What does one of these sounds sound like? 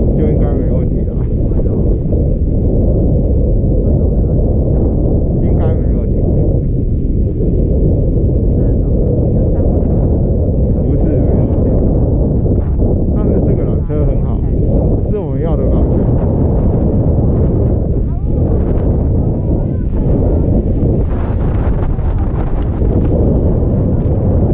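Wind rumbles steadily against a microphone outdoors.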